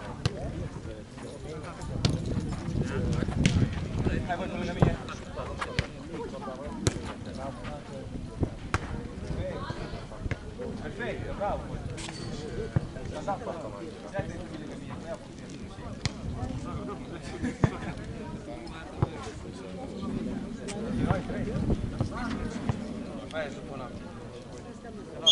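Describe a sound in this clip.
A ball is kicked with sharp thuds outdoors.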